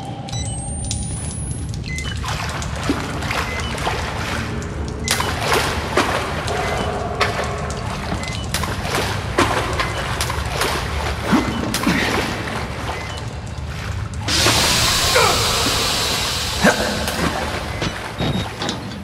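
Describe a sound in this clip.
Footsteps splash through shallow water in an echoing tunnel.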